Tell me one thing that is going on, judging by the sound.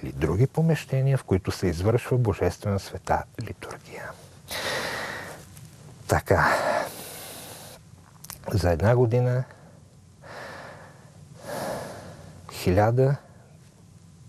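A middle-aged man speaks with animation, with pauses.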